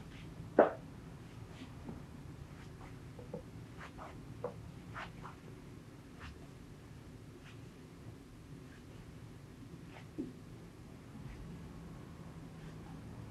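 Hands rub and press on cloth, making a soft rustle.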